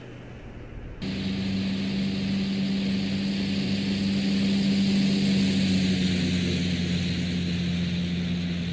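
A jet engine roars loudly as a plane launches.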